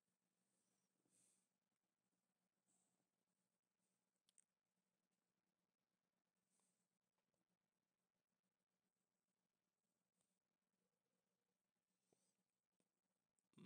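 A young man speaks quietly into a headset microphone.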